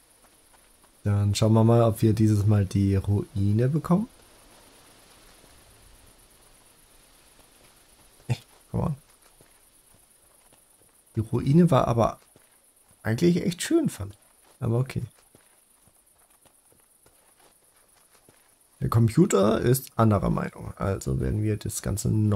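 A young man talks calmly and close into a microphone, in short bursts.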